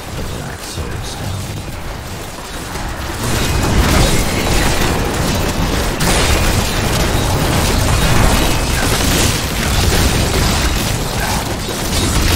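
Game combat sounds of spells and hits crash and rumble continuously.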